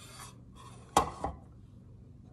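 A glass clinks down on a counter.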